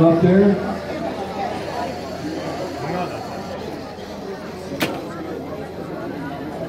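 A crowd of people chatter indoors.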